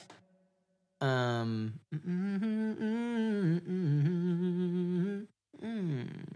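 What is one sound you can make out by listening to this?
A man sings close to a microphone.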